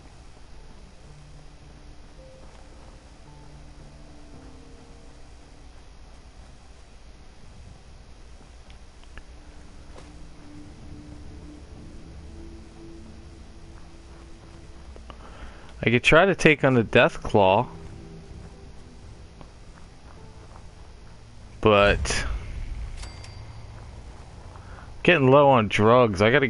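Footsteps crunch slowly over dirt and gravel.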